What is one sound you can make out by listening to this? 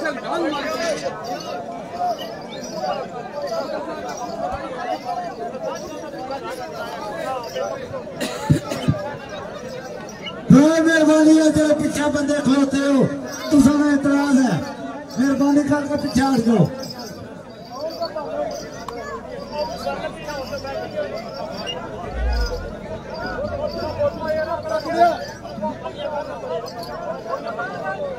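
A crowd of men talk and murmur outdoors.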